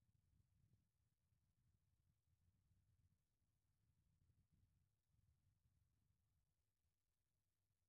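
Wind gusts outdoors, rumbling softly.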